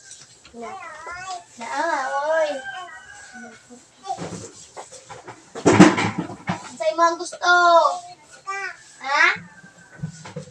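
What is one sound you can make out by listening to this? A child talks in a high, animated voice nearby.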